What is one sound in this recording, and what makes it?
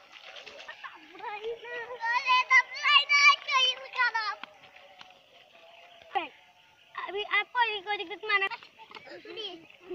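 Young children shout and laugh excitedly nearby.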